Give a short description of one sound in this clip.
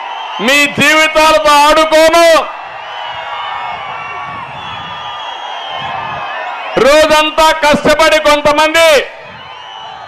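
A man speaks forcefully through a microphone over loudspeakers.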